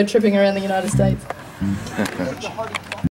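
A band plays music with guitars and drums.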